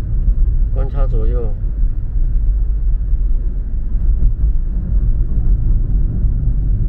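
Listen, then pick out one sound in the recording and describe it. A car's engine and tyres rumble low and steady.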